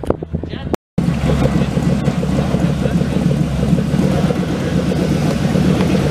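A truck engine idles with a loud, rough, pulsing rumble.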